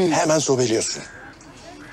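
A woman speaks calmly close by.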